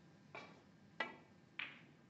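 A cue strikes a snooker ball.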